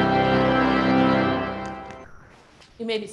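An organ holds a loud chord that fades away in a large echoing hall.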